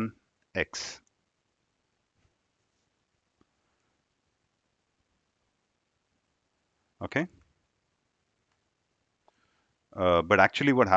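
A young man speaks calmly into a headset microphone, with pauses.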